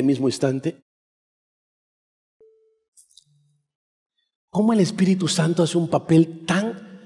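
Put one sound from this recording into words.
A middle-aged man preaches with animation through a headset microphone, pausing between phrases.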